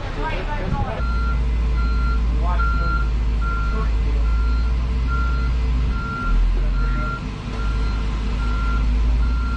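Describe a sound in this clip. A truck engine rumbles inside an aircraft cargo hold.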